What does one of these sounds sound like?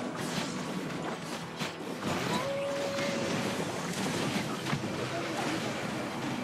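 Game battle effects crackle and blast with spell impacts and hits.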